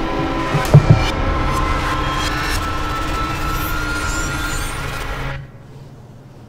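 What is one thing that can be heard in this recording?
A bright ringing shimmer rises and then cuts off.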